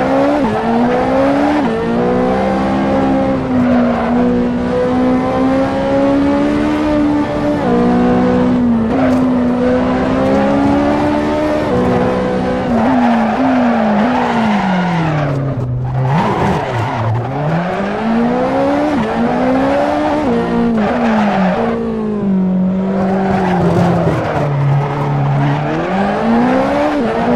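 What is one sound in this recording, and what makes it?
A car engine roars steadily, its pitch rising and falling as gears change and the car slows for bends.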